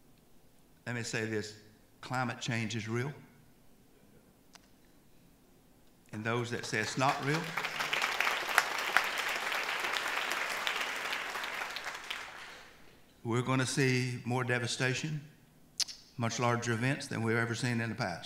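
An older man speaks calmly into a microphone in a large hall.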